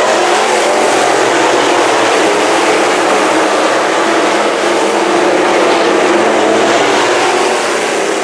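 Race car engines roar loudly as cars speed past close by.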